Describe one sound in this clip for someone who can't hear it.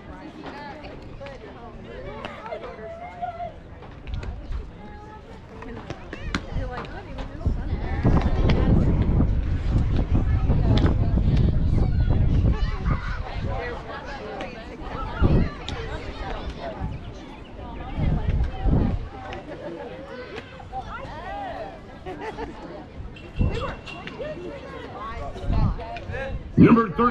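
Young players call out to each other from a distance outdoors.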